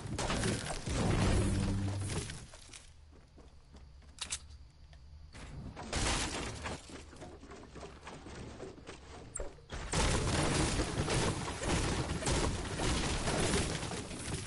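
A pickaxe strikes hard surfaces with sharp knocks.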